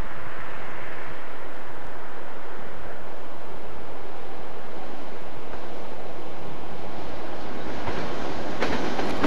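A diesel train rumbles closer along the tracks, growing louder.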